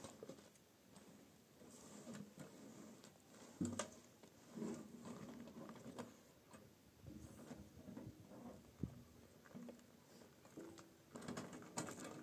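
Soil rattles and scrapes in a metal sieve being shaken nearby.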